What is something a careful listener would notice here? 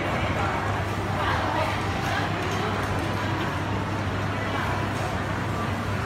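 A crowd of diners chatters in an echoing indoor hall.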